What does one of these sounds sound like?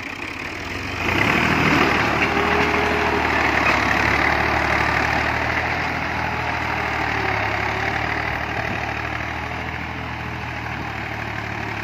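A harrow scrapes and rattles through dry soil.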